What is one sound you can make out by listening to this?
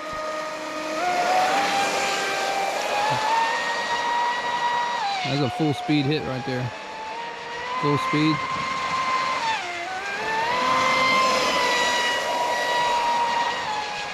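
Water sprays and hisses behind a racing model boat.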